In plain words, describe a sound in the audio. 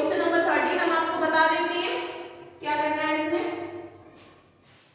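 A young woman speaks calmly and clearly close by.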